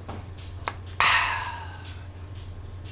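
A man sighs contentedly.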